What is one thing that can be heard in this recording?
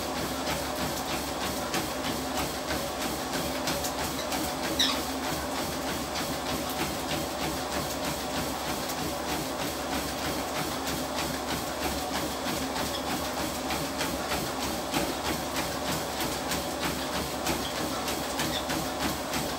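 Feet pound steadily on a treadmill belt.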